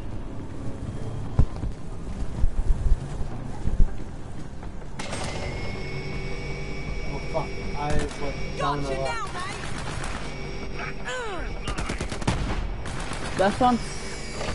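Gunfire from a video game crackles in quick bursts.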